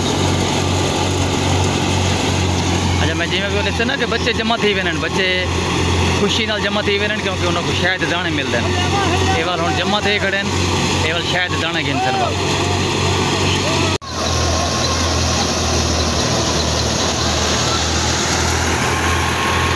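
A threshing machine's engine drones and rumbles steadily nearby.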